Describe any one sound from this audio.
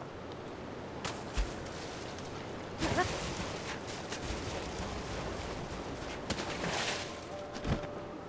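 Water rushes and splashes.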